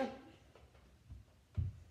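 Footsteps thump on a hard floor close by.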